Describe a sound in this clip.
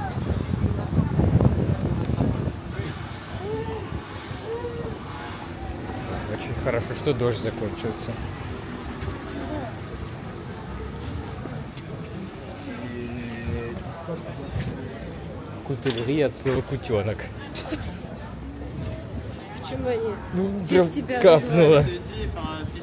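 Men and women talk nearby as they pass on the street.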